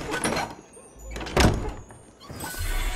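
A heavy chest lid thuds open.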